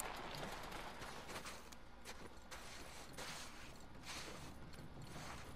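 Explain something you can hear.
Footsteps crunch slowly on snow and gravel.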